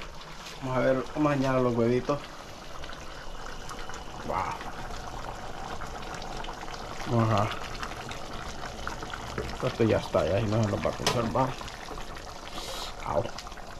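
A wooden spatula scrapes and stirs in a pot.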